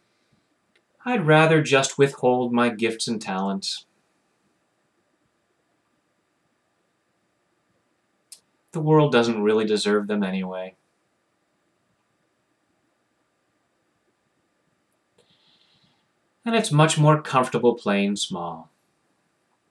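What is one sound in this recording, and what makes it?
A middle-aged man speaks calmly and close to a microphone, in short bursts with pauses.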